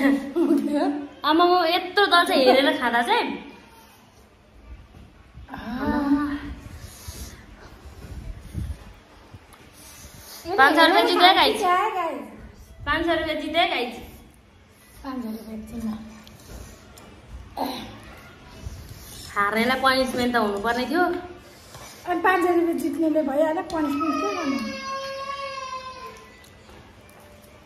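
A second young woman talks cheerfully close by.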